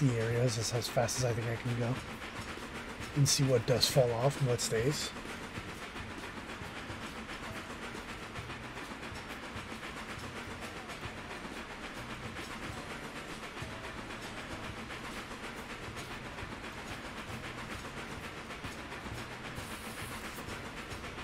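A steam locomotive chugs steadily along.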